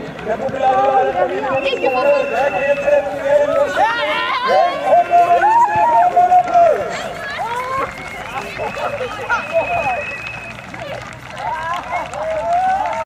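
Young girls shout and cheer excitedly outdoors.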